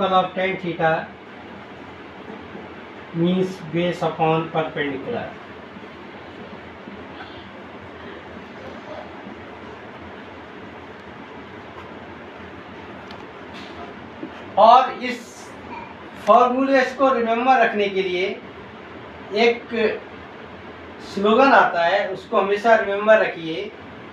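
A man explains calmly, speaking in short bursts with pauses.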